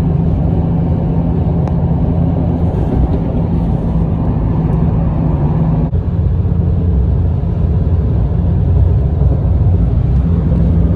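A car drives steadily along a highway, with a low road rumble heard from inside.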